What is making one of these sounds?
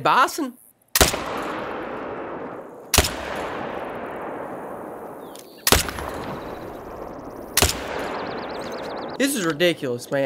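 Rifle shots crack and echo away.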